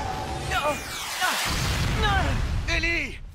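A young man speaks urgently.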